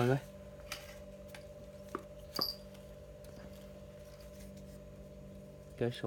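Fishing rods knock lightly against each other as they are picked up.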